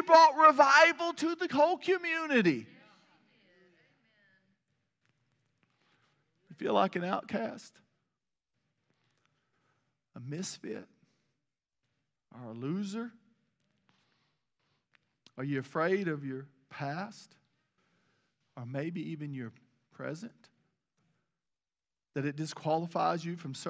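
A middle-aged man speaks with animation through a microphone, pausing often.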